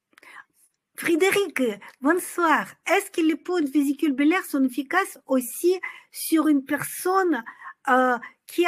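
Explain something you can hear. A middle-aged woman speaks with animation close to a microphone.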